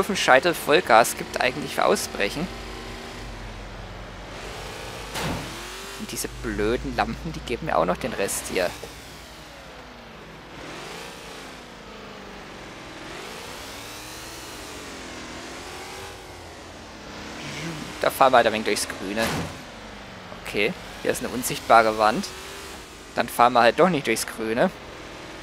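A sports sedan's engine revs up and down as the car accelerates and eases off.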